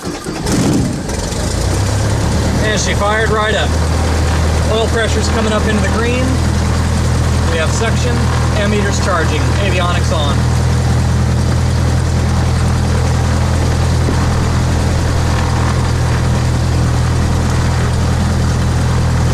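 A small aircraft engine drones steadily and loudly at idle.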